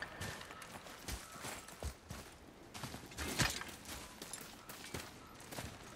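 Footsteps crunch on stone.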